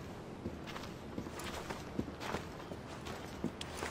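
Footsteps scrape on stone paving.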